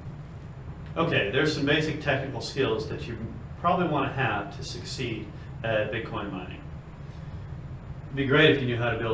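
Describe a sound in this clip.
A middle-aged man speaks calmly and clearly to a listener nearby.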